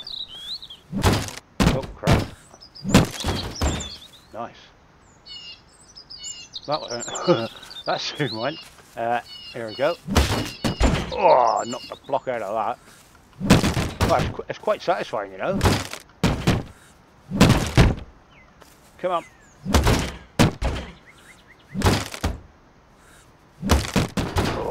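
A sledgehammer bangs heavily against wooden boards, which crack and splinter.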